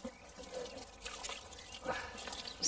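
Liquid pours out of a plastic container and splashes.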